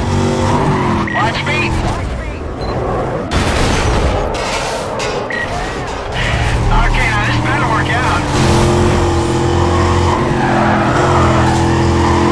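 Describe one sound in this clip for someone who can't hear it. A V8 muscle car engine roars at full throttle.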